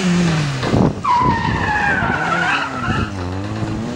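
Tyres squeal on asphalt as a car slides through turns.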